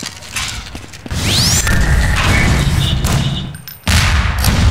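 An energy weapon fires with a loud, booming blast.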